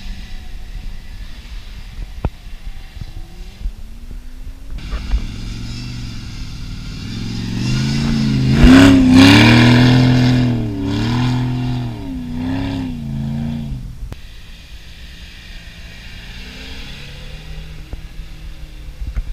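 Tyres spin and spray loose sand.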